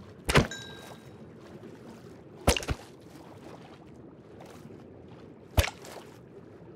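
Sharp hits strike a fish.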